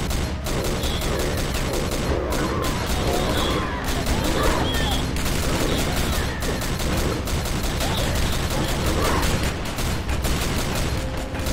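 A heavy machine gun fires in rapid, steady bursts.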